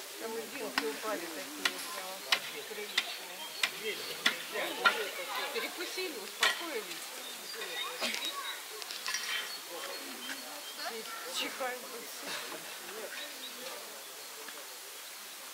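Polar bear cubs whimper and squeal close by.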